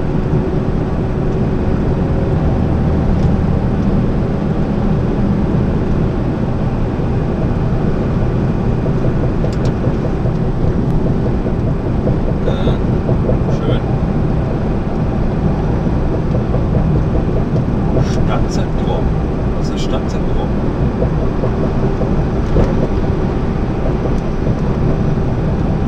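Tyres roar on the motorway under a truck cab.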